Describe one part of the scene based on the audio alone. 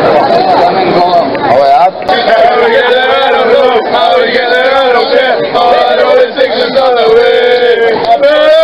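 A group of men sings and chants loudly outdoors.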